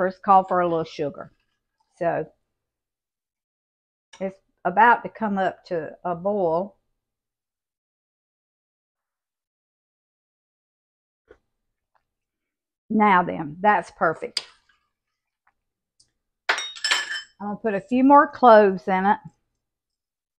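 An elderly woman talks calmly into a close microphone.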